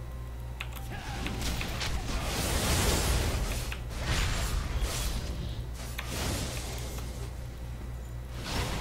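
Game spells and attacks burst and crackle in a fight.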